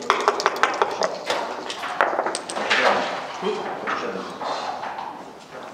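Dice rattle in a cup.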